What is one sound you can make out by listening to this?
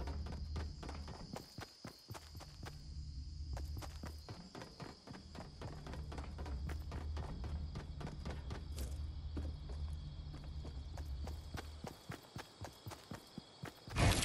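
Game footsteps patter quickly across hard floors.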